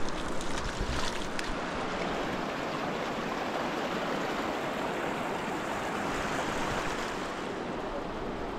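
A shallow stream rushes over stones.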